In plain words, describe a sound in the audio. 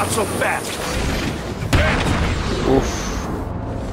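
Punches land in a fistfight.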